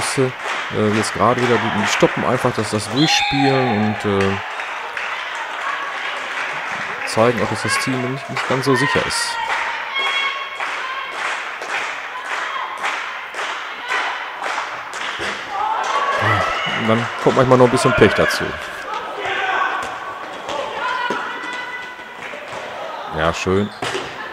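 Young women players call out to each other in a large echoing hall.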